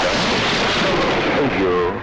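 A man speaks tensely.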